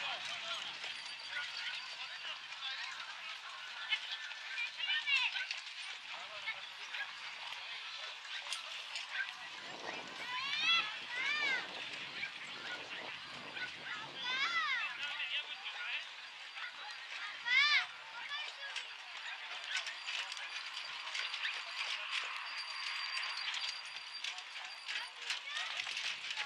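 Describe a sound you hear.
Carriage wheels roll and rattle over dirt.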